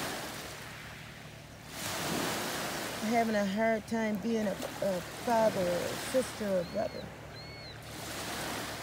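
Small sea waves lap against a boat's hull.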